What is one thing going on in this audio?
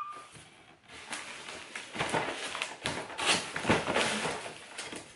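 Cardboard flaps rustle and scrape as a box is opened.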